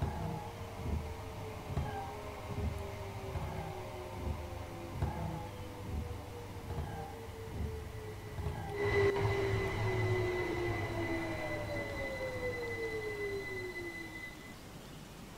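Train wheels clatter rhythmically over rail joints, slowing down.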